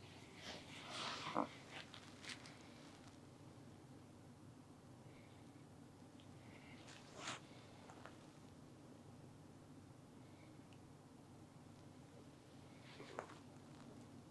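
Fabric rustles softly as hands press on a blanket.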